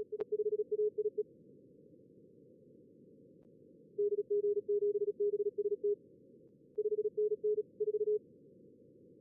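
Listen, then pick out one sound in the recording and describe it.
Morse code beeps sound in short bursts of a steady tone.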